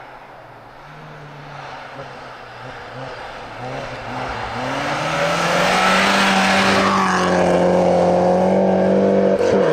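A car engine roars closer and passes by at high revs.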